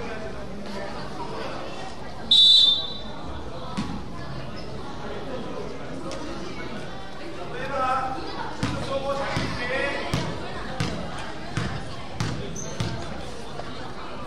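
A crowd of young people chatters and shouts.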